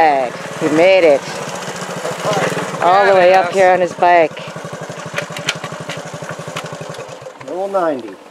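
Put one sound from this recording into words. A small motorcycle engine idles with a fast, steady putter, then cuts off.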